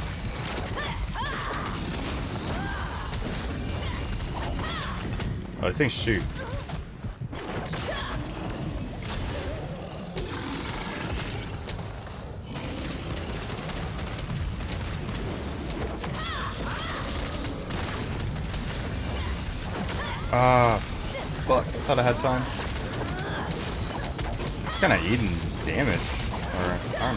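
Loud magic blasts crackle and boom in a battle.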